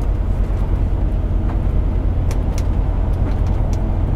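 Windscreen wipers sweep and thump across the glass.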